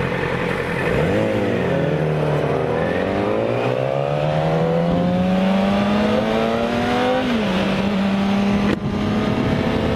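A motorcycle engine revs up and accelerates, rising in pitch and then shifting gear.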